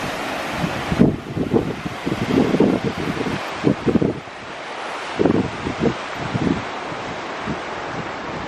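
Wind buffets loudly in gusts outdoors.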